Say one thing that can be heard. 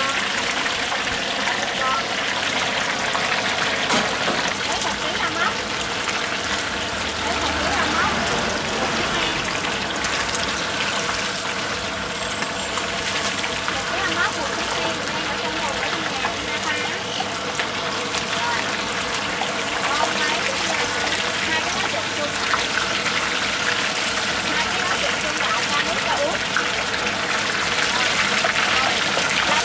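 A metal spatula scrapes and knocks against a wok.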